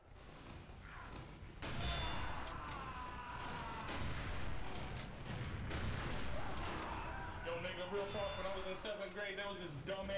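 A rifle fires several loud shots.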